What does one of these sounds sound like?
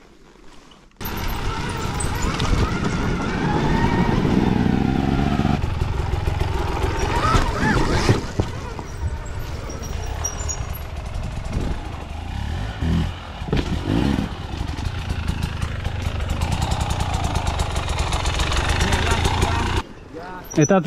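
A dirt bike engine revs and roars close by.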